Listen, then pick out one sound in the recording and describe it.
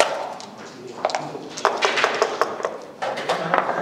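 Dice rattle in a cup.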